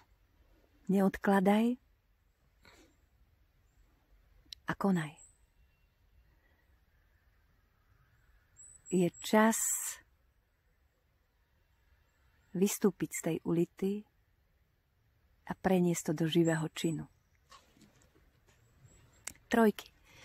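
A middle-aged woman speaks calmly and close by, with pauses between phrases.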